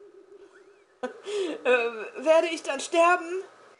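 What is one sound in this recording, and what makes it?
A woman speaks with animation into a microphone, close up.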